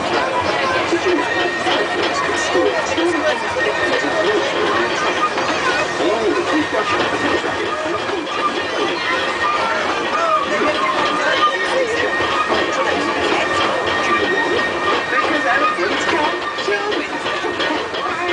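Wind blows past in the open air.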